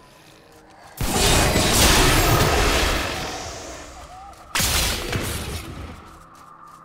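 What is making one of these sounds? A magic spell bursts with a loud roaring whoosh.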